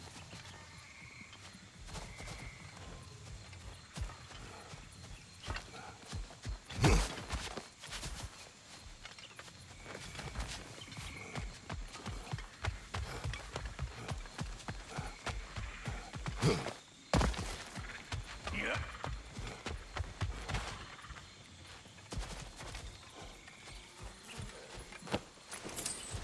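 Heavy footsteps crunch steadily over ground.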